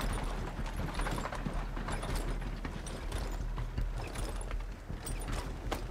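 Cart wheels roll along.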